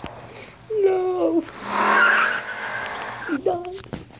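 A boy laughs loudly.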